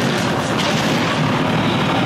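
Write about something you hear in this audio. An energy blast bursts with a crackling boom.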